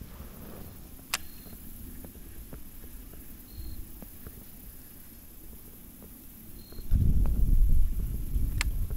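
A fishing reel ticks softly as line is wound in.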